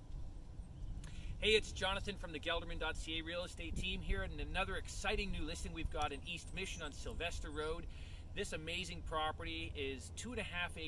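A middle-aged man speaks to the microphone with animation, outdoors.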